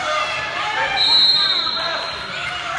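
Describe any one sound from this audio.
A referee blows a short whistle blast.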